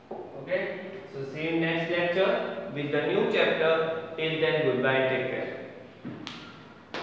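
A young man speaks calmly to the room.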